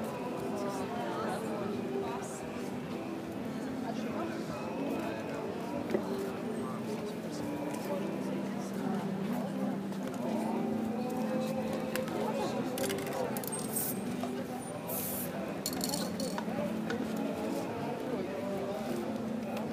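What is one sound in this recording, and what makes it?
Voices of people murmur nearby outdoors.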